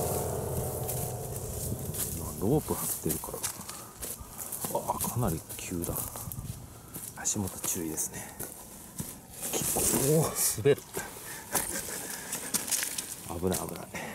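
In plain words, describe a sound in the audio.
Footsteps crunch and rustle through dry leaves on the ground.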